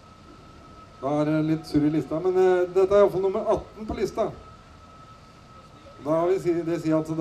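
A man talks loudly and with animation nearby, outdoors.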